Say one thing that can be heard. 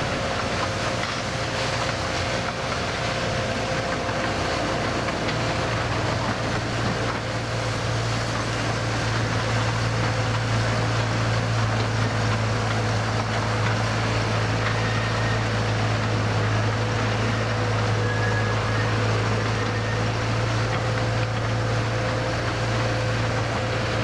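A locomotive engine hums steadily.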